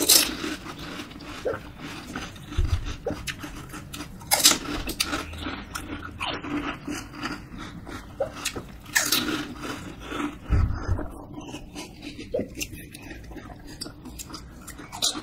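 Crisp hollow snacks crunch loudly close up as they are bitten.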